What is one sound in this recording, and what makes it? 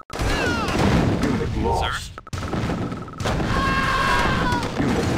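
Gunfire and small explosions crackle in a battle.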